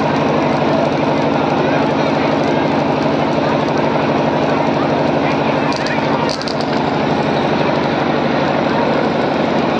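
A young woman speaks into a microphone, heard through loud loudspeakers.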